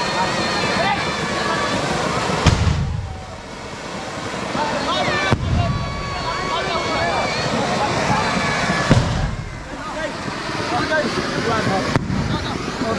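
A firework hisses and spits sparks on the ground.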